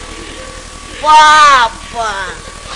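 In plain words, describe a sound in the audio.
A middle-aged woman cries out loudly.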